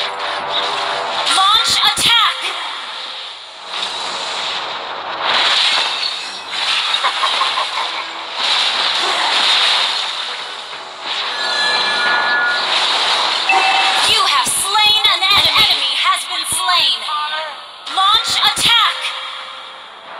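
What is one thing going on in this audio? Magic spells whoosh and burst in quick blasts.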